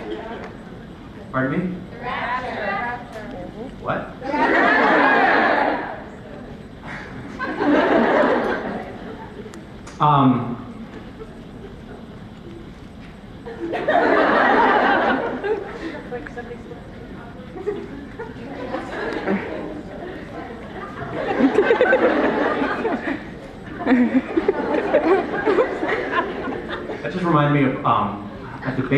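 A young man speaks casually into a microphone, heard through loudspeakers in a large hall.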